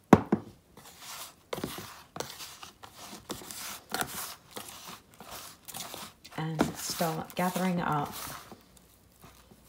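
Fingers rustle and scrape through dry, gritty soil.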